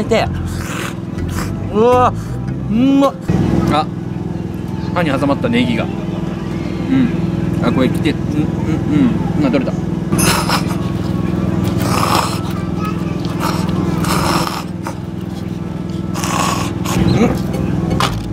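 A young man slurps noodles loudly.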